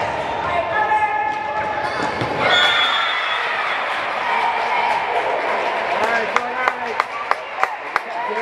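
Young women shout and call out across a large echoing hall.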